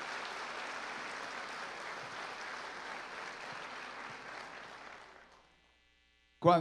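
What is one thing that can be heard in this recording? A large crowd applauds in a big hall, then the clapping fades away.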